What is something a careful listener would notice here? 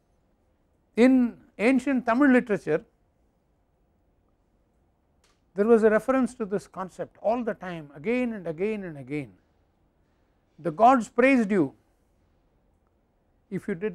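An elderly man speaks calmly into a clip-on microphone, pausing between phrases.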